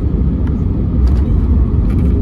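Landing gear tyres thump down onto the runway at touchdown.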